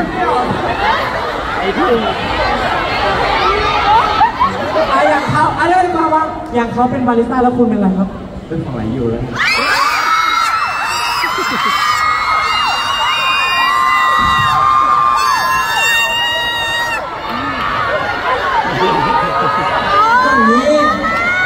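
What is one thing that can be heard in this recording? A young man talks playfully into a microphone over loudspeakers.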